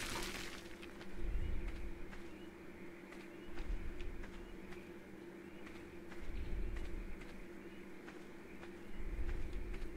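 Footsteps crunch steadily over dirt.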